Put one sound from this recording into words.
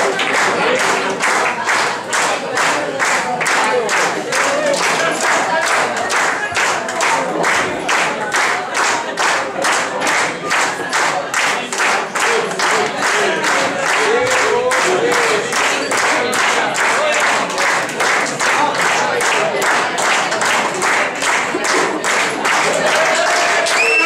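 A crowd claps along in a steady rhythm in a large room.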